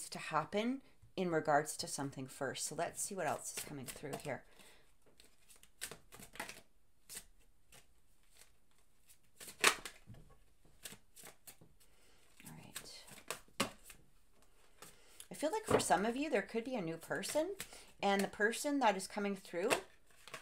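Playing cards riffle and tap softly together.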